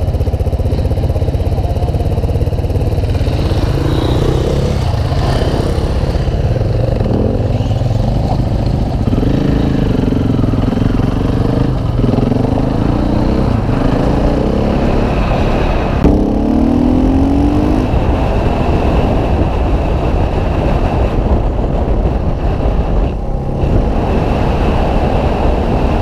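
A dirt bike engine drones and revs up and down close by.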